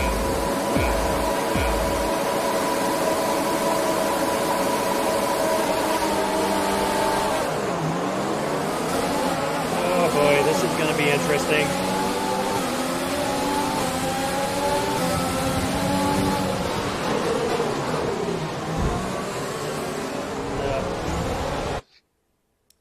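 Racing car engines roar and rev loudly.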